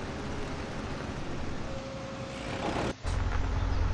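A combine harvester's engine drones steadily.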